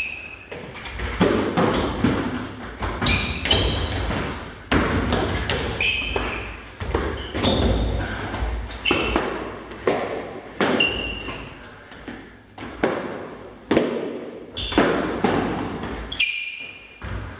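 Practice swords clack against each other in quick, sharp knocks.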